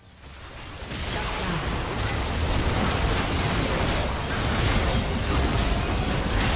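Magic blasts, whooshes and clashing hits burst in a busy fight in a video game.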